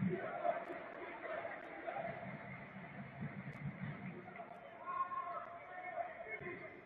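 A stadium crowd chants and cheers steadily in a large open space.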